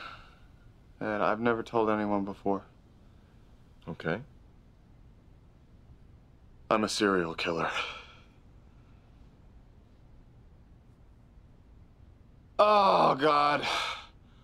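A man speaks calmly and quietly nearby, in short phrases with pauses.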